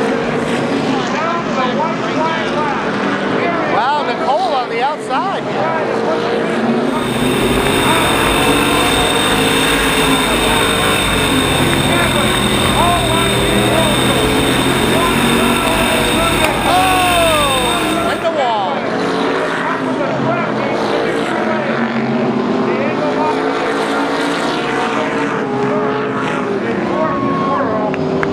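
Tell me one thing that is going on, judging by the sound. Race car engines roar past on a track outdoors.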